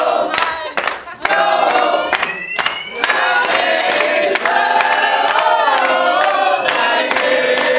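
Hands clap along in a steady beat.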